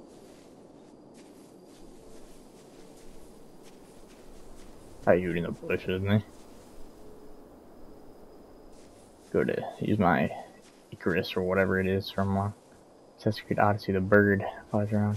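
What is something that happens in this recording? Leaves rustle softly as someone pushes through dense bushes.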